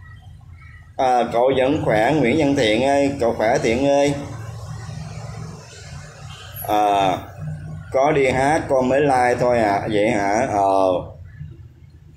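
An older man speaks calmly, close to the microphone.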